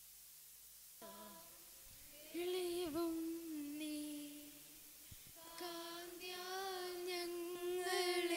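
A man chants in a steady, sung voice through a loudspeaker.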